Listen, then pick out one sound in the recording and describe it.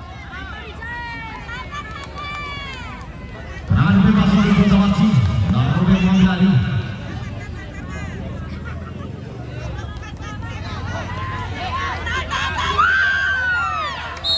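A large crowd of spectators chatters and shouts outdoors.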